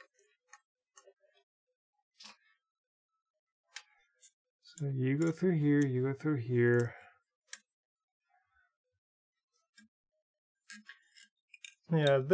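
Plastic cable chain links click softly as hands handle them.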